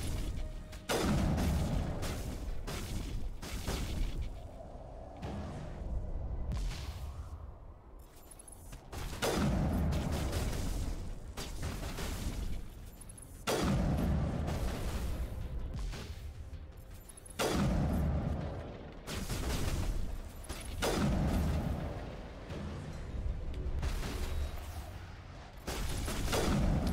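Rifle shots boom loudly every few seconds.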